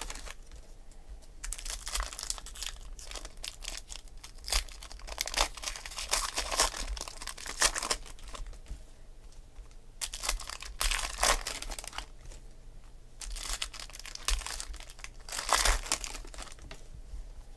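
Trading cards slap softly onto a pile.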